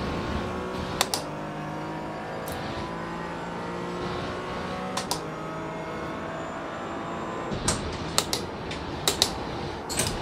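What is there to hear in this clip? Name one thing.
A racing car engine roars steadily, its pitch climbing and dropping with the gear changes.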